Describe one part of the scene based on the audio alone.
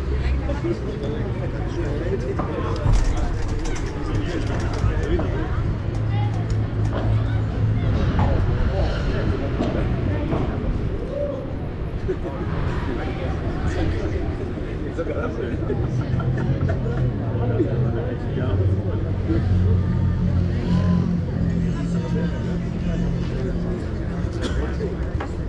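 Footsteps scuff on an outdoor court.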